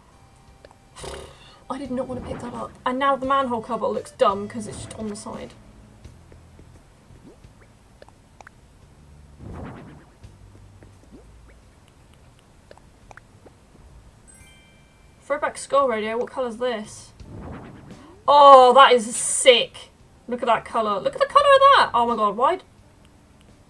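A young woman talks casually into a microphone, in short bursts.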